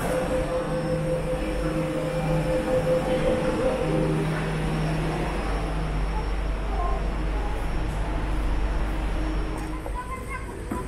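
A train rumbles and hums steadily.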